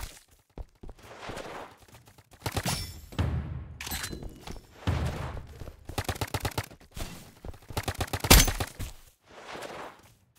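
A toy blaster fires rapid bursts of shots.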